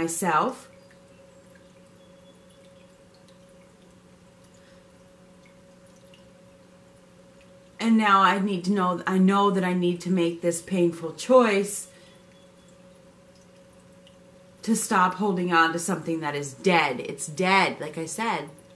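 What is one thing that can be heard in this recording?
Water trickles softly down a small fountain.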